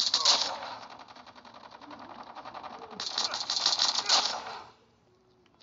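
Automatic rifle gunfire rattles.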